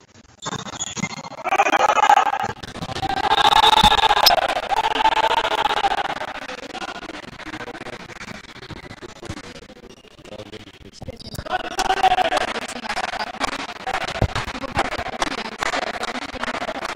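Young men shout and cheer together in a large echoing hall.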